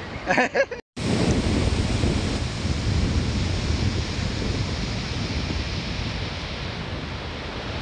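Gentle surf washes onto a beach, heard outdoors in wind.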